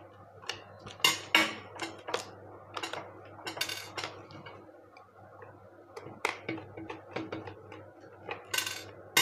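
Plastic parts knock and rattle as a handle is pulled apart.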